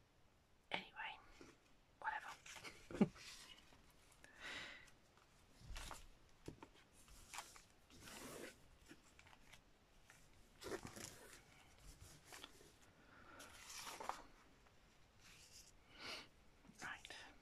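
Thin plastic crinkles as hands handle it.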